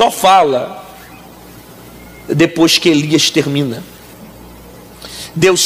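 A man preaches with animation through a microphone.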